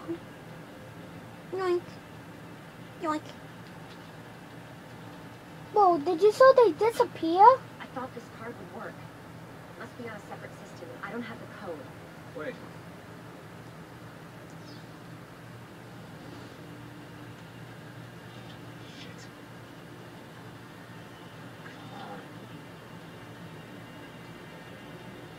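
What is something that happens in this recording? A television plays a film soundtrack through its speaker, with bursts of sound and quiet stretches.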